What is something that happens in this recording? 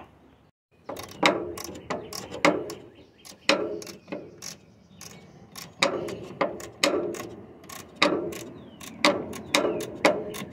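A socket wrench clicks rapidly while turning a bolt.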